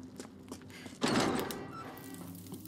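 A heavy door bangs open.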